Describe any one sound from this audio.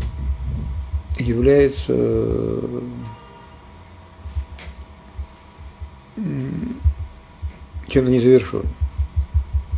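An elderly man speaks calmly into a nearby microphone, with long pauses.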